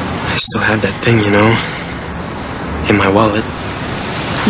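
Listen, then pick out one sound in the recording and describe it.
A young man speaks softly up close.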